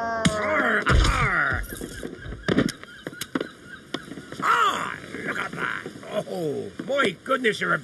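A cartoon man laughs loudly and heartily.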